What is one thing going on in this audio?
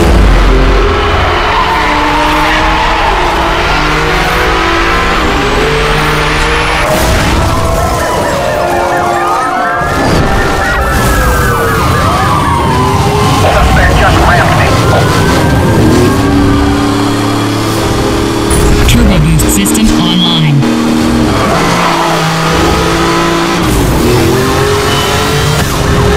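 A sports car engine roars at high speed.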